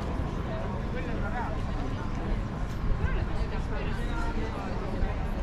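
Men and women chat at nearby outdoor tables, their voices mixing.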